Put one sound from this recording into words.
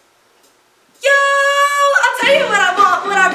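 A young woman sings loudly through a loudspeaker.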